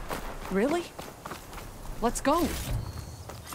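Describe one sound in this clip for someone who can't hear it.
An animal squeals in short, sliding cries.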